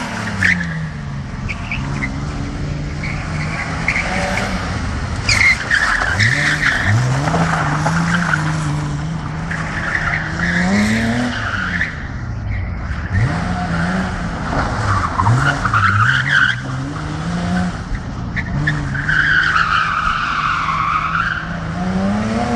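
Tyres squeal loudly on pavement as a car drifts.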